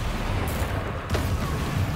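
A bright spell explodes with a loud crackling burst.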